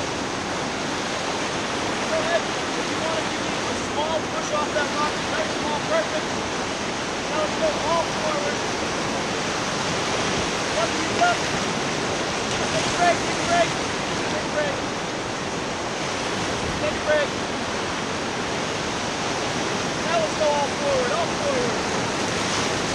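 Whitewater rapids rush and roar loudly, close by.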